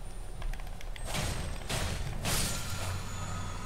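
A sword swings and strikes with loud whooshing hits.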